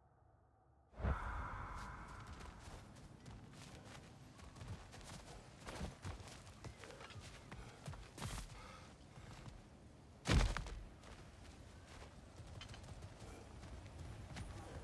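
Heavy footsteps crunch on gravel and stone.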